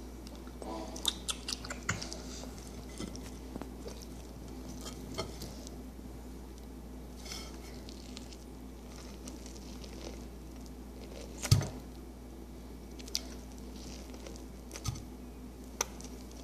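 Small hands knock and tap on a plate.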